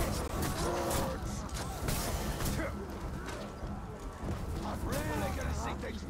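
Blows and blades strike in a fight.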